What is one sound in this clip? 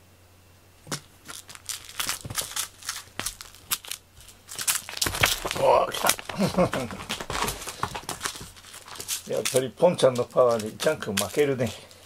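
Cats scamper and scuffle nearby.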